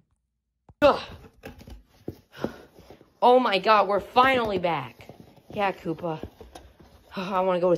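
A cardboard box scrapes and rustles as it is handled.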